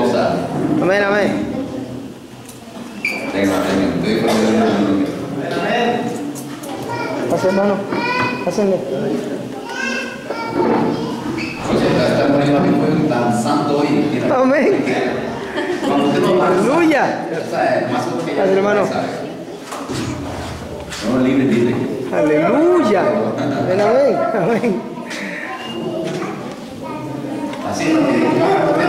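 A man speaks with animation through a microphone over loudspeakers in a room with some echo.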